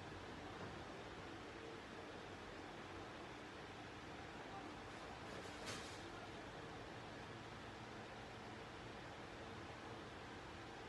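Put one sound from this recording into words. Small waves wash gently onto a beach.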